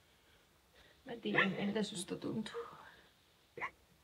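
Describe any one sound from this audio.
A young woman sobs and sniffles.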